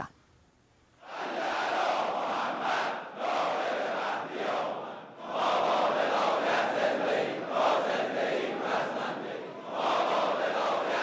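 A large crowd chants and shouts in a big hall.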